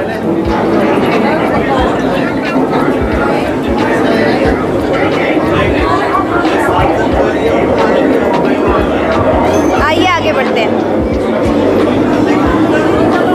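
A crowd of people chatters and murmurs close by.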